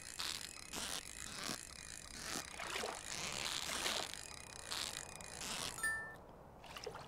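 A fishing reel whirs rapidly in a video game.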